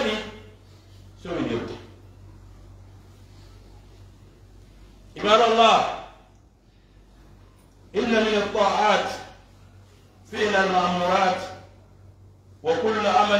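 A man chants in long, drawn-out phrases through a loudspeaker in an echoing hall.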